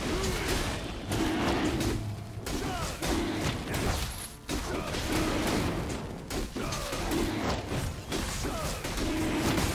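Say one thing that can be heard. Spell effects crackle and burst during a fight.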